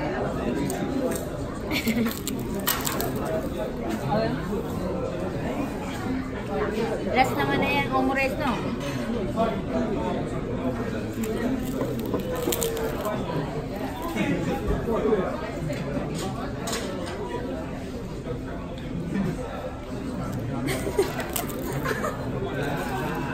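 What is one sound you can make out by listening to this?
A busy room murmurs with chatter in the background.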